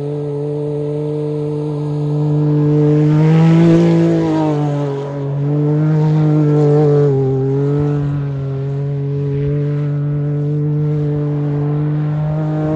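A turbocharged three-cylinder side-by-side engine revs up and down.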